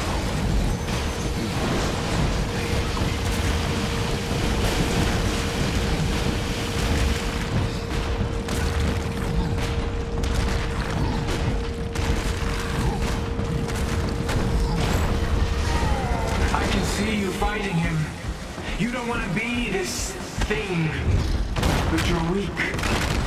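Energy blasts crack and boom repeatedly.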